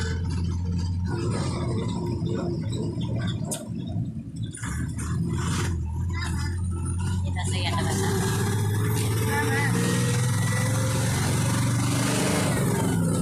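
Tyres roll on the asphalt.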